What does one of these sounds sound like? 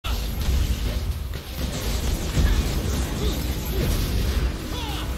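Game spell effects burst and crackle in quick succession.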